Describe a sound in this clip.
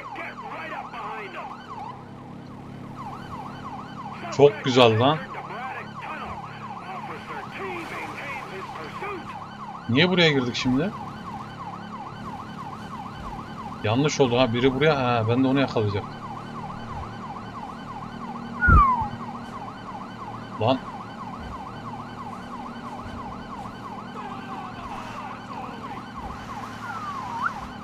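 A siren wails steadily throughout.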